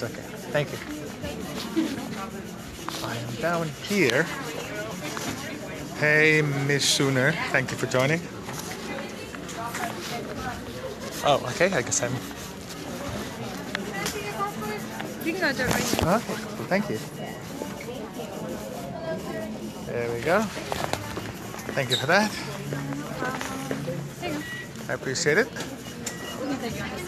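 A crowd of people chatters in a large echoing hall.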